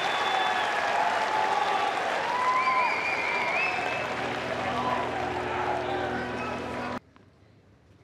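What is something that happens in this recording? A large crowd cheers and whistles loudly in an echoing arena.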